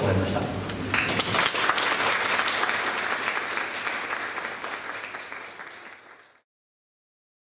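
An audience applauds and the clapping slowly fades.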